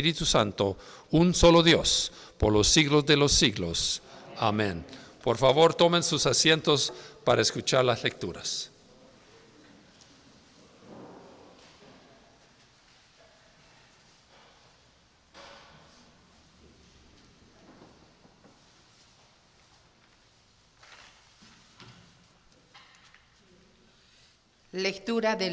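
A woman reads aloud steadily into a microphone, heard through loudspeakers in an echoing hall.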